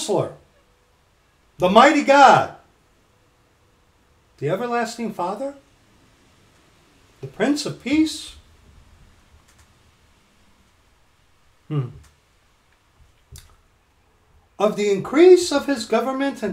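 A middle-aged man speaks calmly in short bursts close to a microphone.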